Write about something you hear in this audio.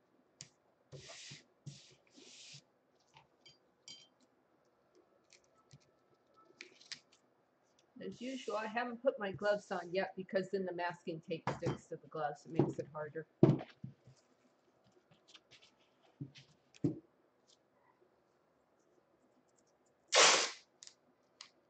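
Plastic wrap crinkles as a canvas is handled.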